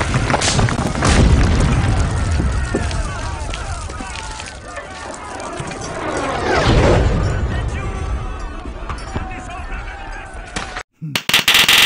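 A large crowd of men shouts and roars in a chaotic brawl.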